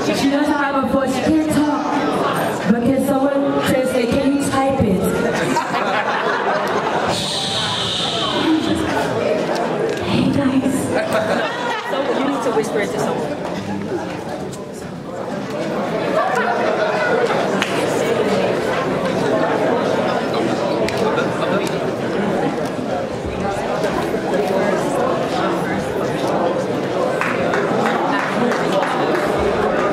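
A crowd of people chatters and cheers loudly around the speaker.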